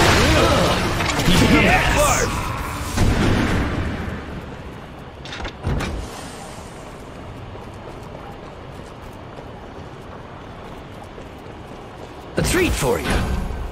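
Magic blasts crackle and whoosh in bursts.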